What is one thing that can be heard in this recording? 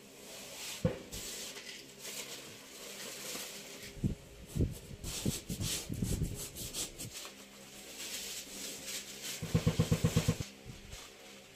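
Stiff paper rustles and crinkles.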